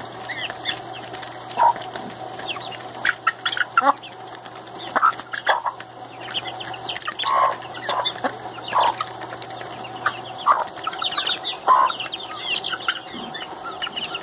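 Chickens cluck and chirp softly.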